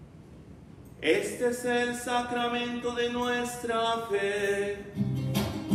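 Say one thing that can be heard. A man chants in a sustained singing voice through a microphone.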